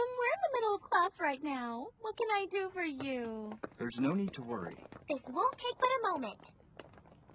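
A young woman speaks with animation.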